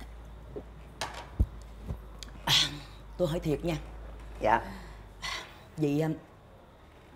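A middle-aged woman sobs and cries.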